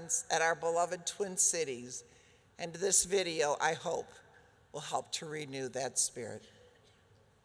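An older woman speaks with feeling through a microphone in a large hall, pausing between phrases.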